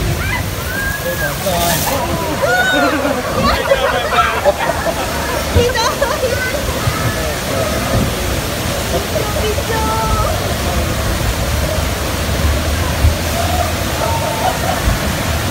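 Water splashes and rushes steadily.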